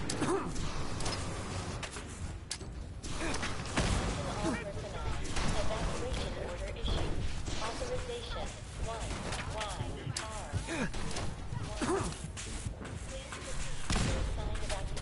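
Explosions burst and crackle.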